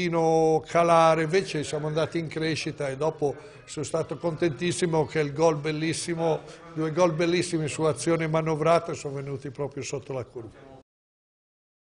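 An older man speaks with animation close to microphones.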